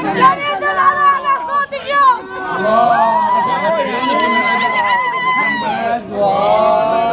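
A crowd of women and men talk and call out excitedly close by.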